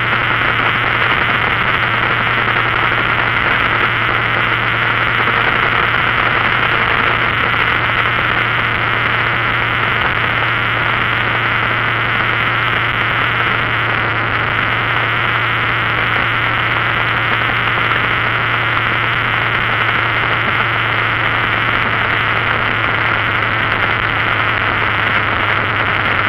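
An engine hums steadily.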